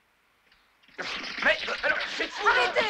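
A man speaks up with animation close by.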